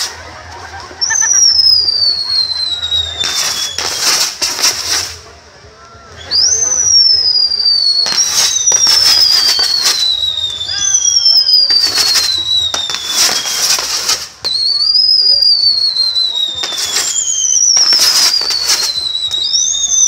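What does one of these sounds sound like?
Fireworks whistle shrilly, each whistle sliding down in pitch.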